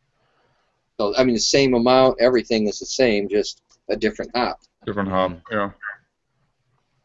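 A middle-aged man speaks with animation over an online call.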